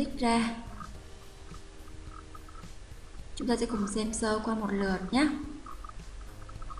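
A young woman speaks calmly into a nearby microphone.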